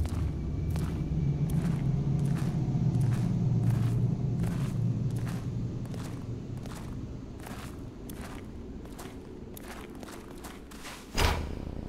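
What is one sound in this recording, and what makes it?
Footsteps crunch slowly on gravel and sand.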